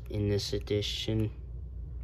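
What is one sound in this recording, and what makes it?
Paper pages rustle softly as a book is handled.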